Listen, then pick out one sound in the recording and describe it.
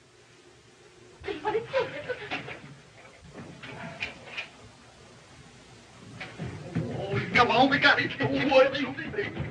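Footsteps thump across a wooden floor.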